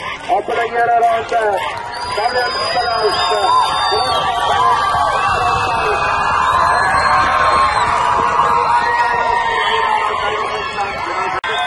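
A crowd of onlookers chatters and cheers nearby outdoors.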